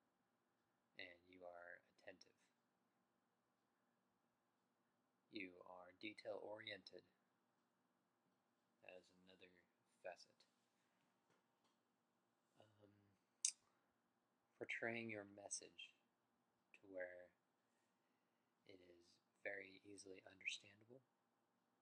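A young man speaks calmly in short phrases, close to the microphone, with pauses between them.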